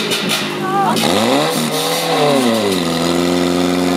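A petrol engine revs up sharply and settles.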